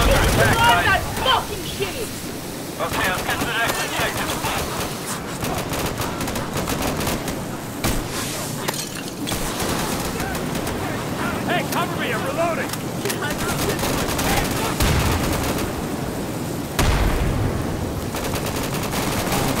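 Flames crackle and roar steadily.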